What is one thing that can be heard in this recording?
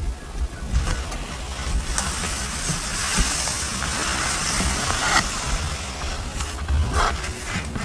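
Hands rub and brush across paper pages up close.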